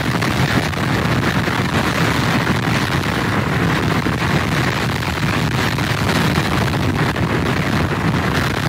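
Rough surf crashes and roars against pier pilings.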